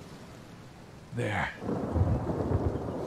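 Thunder rumbles over the sea.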